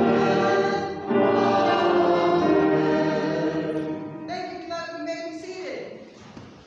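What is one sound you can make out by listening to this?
A small choir sings in a large echoing hall.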